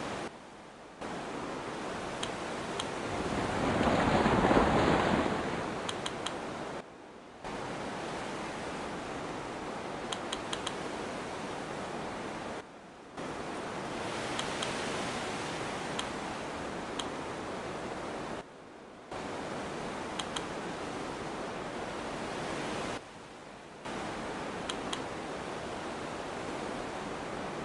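Water rushes and splashes past a sailing boat.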